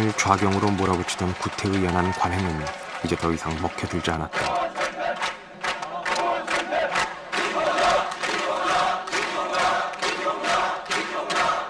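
A large crowd shouts and chants outdoors.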